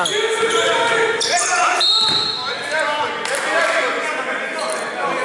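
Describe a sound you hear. Men call out to each other across a large echoing hall.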